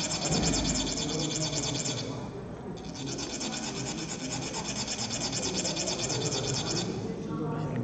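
A metal funnel rasps rapidly and steadily.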